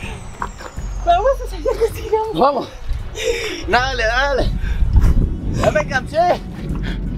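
A young man shouts and laughs close by.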